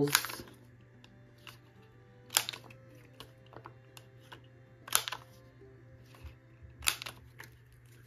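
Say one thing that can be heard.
A tape dispenser clicks as it is pressed.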